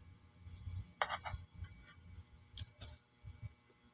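A metal spoon scrapes and clinks against a plastic plate.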